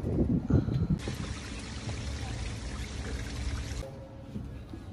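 Water trickles steadily over a ledge.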